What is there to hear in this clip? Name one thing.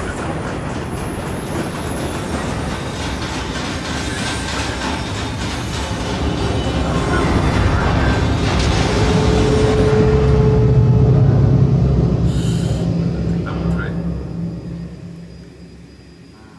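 Heavy rain pours down outdoors, then fades away.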